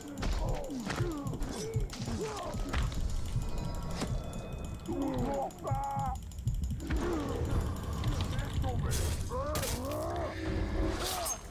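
Swords clash and strike.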